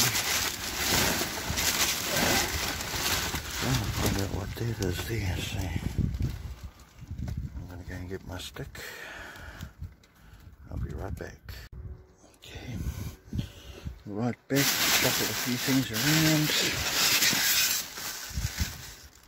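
Plastic trash bags rustle and crinkle.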